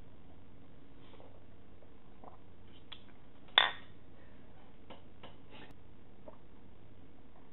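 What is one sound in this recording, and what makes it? A woman sips a drink noisily.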